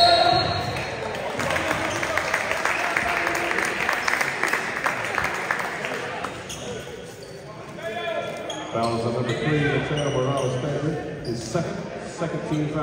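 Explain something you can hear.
Young men shout and call out in a large echoing gym.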